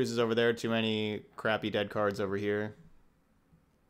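A man speaks calmly and close into a microphone.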